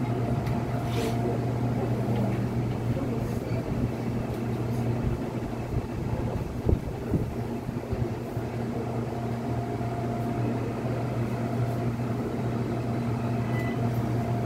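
A subway train rumbles and hums steadily as it moves through a tunnel.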